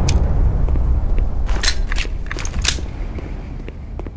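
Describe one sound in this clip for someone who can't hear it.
A pistol is reloaded with metallic clicks.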